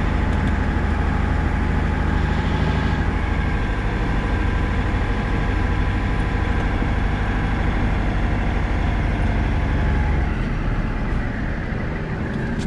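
The cab rattles and shakes over a snowy road.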